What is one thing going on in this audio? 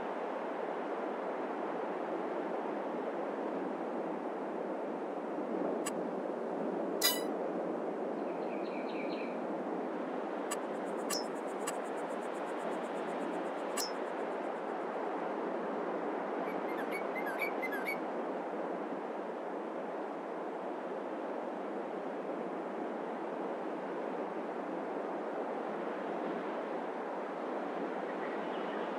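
A young man talks casually into a close microphone.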